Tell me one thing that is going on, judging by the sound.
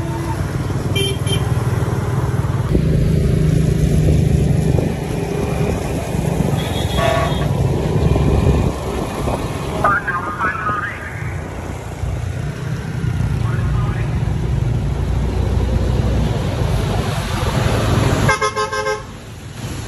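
Horns beep briefly nearby.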